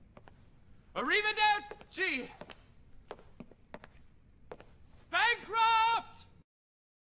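A man shouts out in despair with animation.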